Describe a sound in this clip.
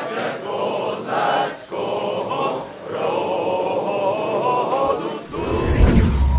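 A crowd of men and women talks and shouts loudly outdoors.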